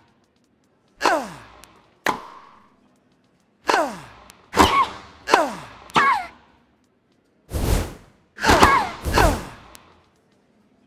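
A tennis ball is struck hard with a racket, again and again, each hit followed by a falling whoosh.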